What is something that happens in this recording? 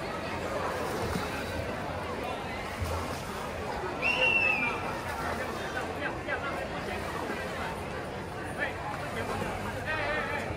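A swimmer splashes steadily through the water nearby.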